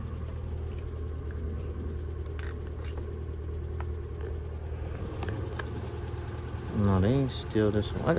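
Plastic car parts click and rattle as a hand handles them.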